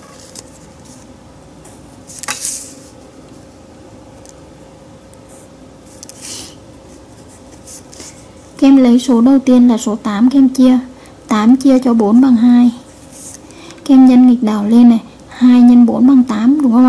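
A marker pen squeaks and scratches on paper.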